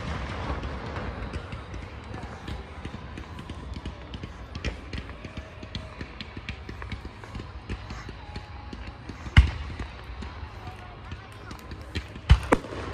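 Fireworks boom and crackle in the distance.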